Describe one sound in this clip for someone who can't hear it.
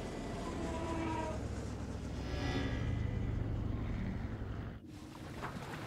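A hovering tank hums loudly as it glides over grass.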